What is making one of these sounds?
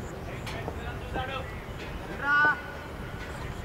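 Men call out in the distance across the field.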